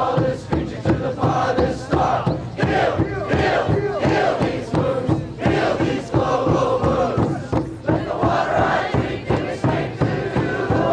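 A rock band plays loudly in a large hall.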